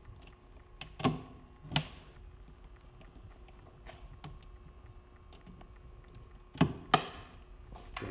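A metal latch clicks and snaps shut.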